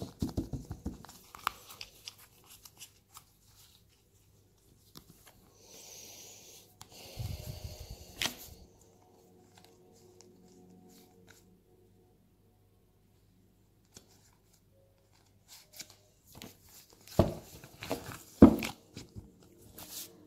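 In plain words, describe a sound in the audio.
Fingers tap and rub on a card.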